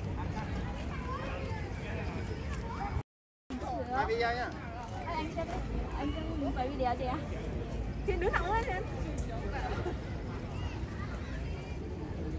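Many people chatter in the background outdoors.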